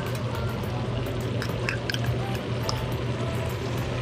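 A spoon scrapes against a glass jar.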